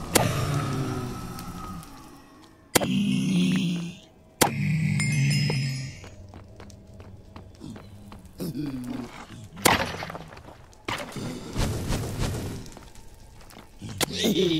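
Sharp thwacks of a sword striking a creature ring out.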